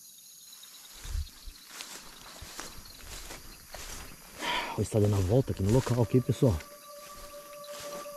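Grass and leafy plants rustle and brush loudly close by.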